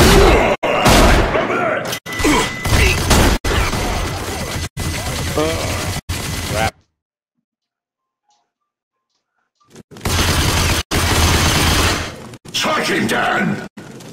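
A man talks with animation into a microphone.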